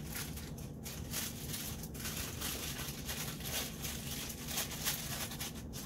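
A box grater scrapes through a bar of chocolate in repeated strokes.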